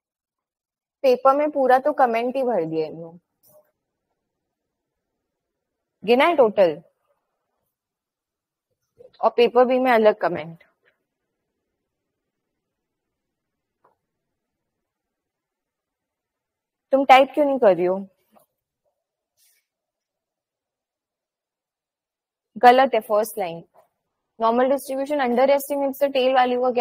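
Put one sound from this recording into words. A young woman speaks calmly through an online call microphone, in short bursts with pauses.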